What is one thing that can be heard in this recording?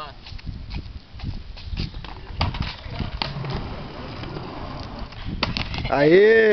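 A skateboard clacks sharply against the ground.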